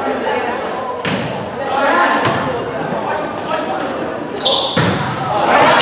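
A volleyball is struck with sharp smacks in a large echoing gym.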